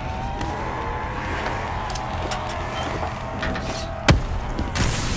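Sparks crackle and sizzle.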